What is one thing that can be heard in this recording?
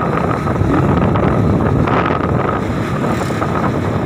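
Another motorbike passes close by.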